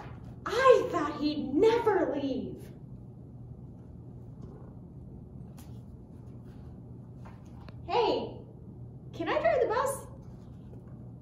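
A young woman reads a story aloud with animation, close by.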